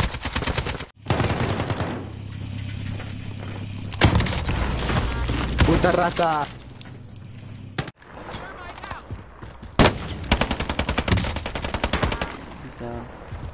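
Video game gunfire crackles in rapid bursts.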